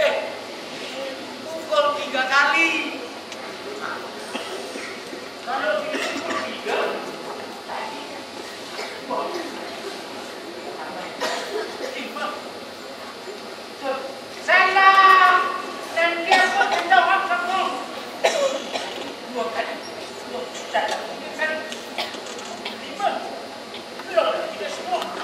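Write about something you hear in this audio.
A man speaks with animation through loudspeakers in a large echoing hall.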